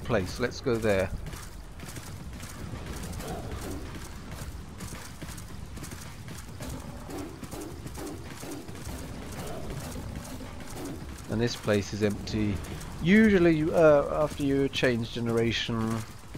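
An animal's paws patter over gravel.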